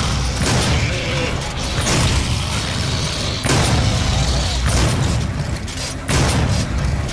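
A shotgun fires in loud, repeated blasts.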